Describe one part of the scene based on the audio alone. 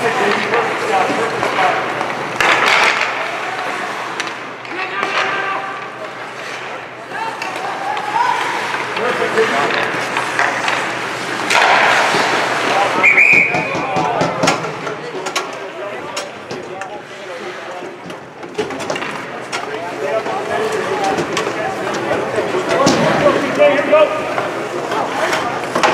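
Sticks clack against a puck.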